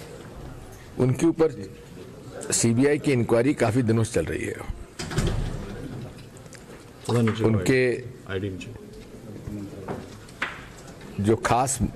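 An elderly man speaks calmly into microphones, close by.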